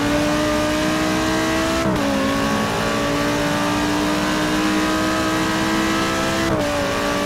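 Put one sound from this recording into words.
A racing car engine whines loudly, climbing in pitch and dropping briefly at each gear change.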